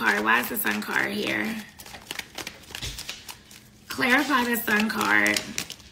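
Cards rustle and slap as a young woman shuffles them.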